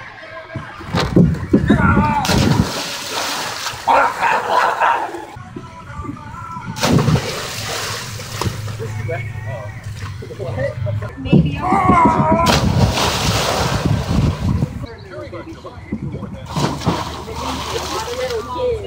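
Water splashes loudly as someone jumps into a pool.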